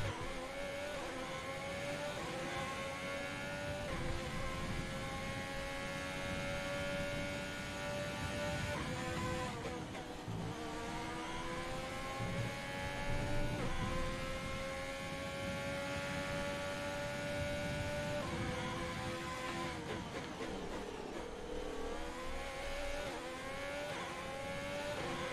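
A racing car engine screams at high revs, rising in pitch through each gear and dropping sharply at each shift.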